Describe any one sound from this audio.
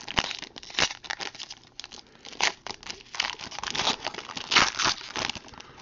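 A foil pack crinkles as fingers rip it open.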